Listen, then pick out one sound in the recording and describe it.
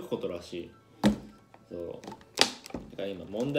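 A plastic bottle thumps down on a table.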